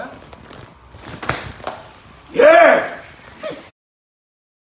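Plastic sheeting rustles and crinkles.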